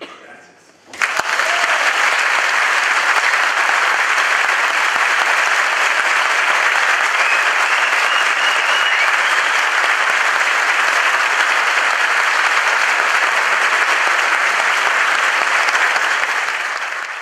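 A large crowd applauds loudly and cheers in an echoing hall.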